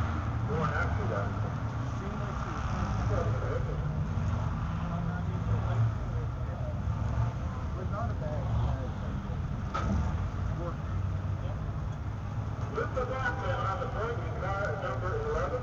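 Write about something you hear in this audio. A car engine idles with a steady low rumble close by.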